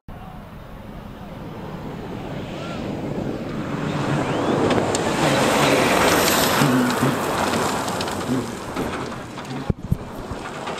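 Tyres kick up gravel on a dirt track.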